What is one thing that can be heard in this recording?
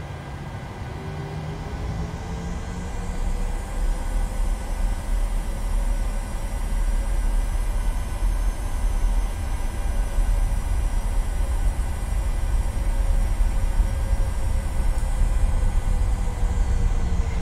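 A jet engine whine rises as the engines spool up, then holds.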